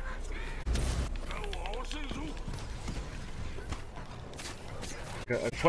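Weapons clash and magic bursts explode in a fierce fight.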